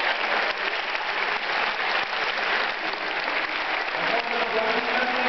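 A large crowd cheers and claps loudly in an echoing hall.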